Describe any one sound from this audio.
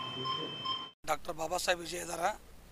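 A man speaks calmly into microphones.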